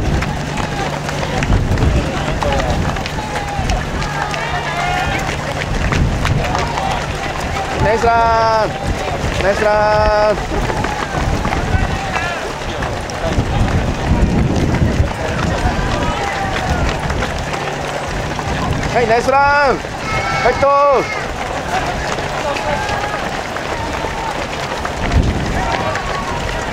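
A crowd of spectators chatters and cheers along the roadside.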